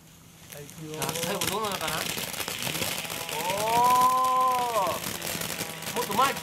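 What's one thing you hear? A firework fountain hisses and crackles loudly.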